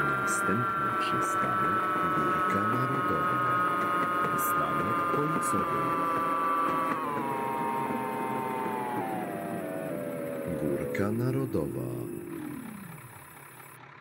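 Tram wheels rumble and clatter over the rails.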